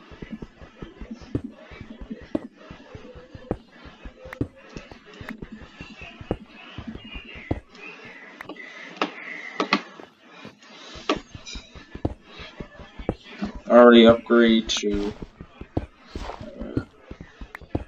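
Rapid clicking knocks of blocks being dug in a game.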